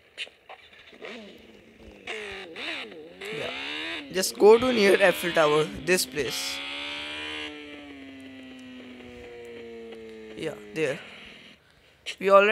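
A motorbike engine revs and hums as it rides along.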